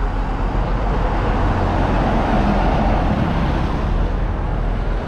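A truck roars past close by.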